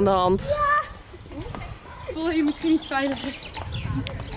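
Young girls talk and call out.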